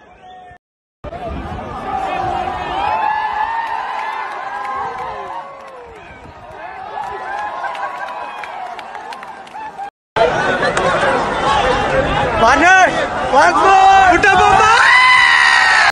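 Young men close by shout and chant loudly.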